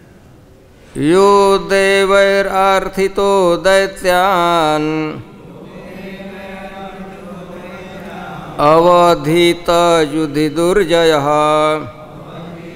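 An elderly man chants verses in a sing-song voice through a microphone.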